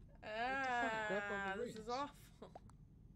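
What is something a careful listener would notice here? A young man speaks with animation into a microphone, close by.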